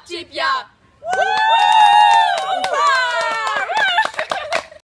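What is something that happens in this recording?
A group of young people sing loudly together.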